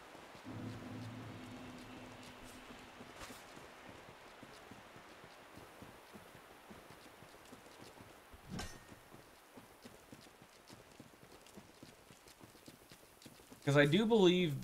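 Footsteps thud on the ground as someone runs.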